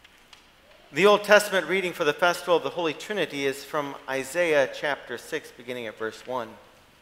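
A middle-aged man reads aloud calmly through a microphone.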